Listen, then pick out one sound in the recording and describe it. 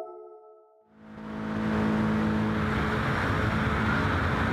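A racing car engine idles with a steady drone.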